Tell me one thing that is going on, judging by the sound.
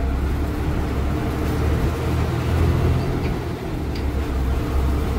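A bus engine rumbles steadily as the bus drives along a road.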